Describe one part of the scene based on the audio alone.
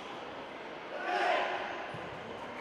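A group of young men shout together sharply in a large echoing hall.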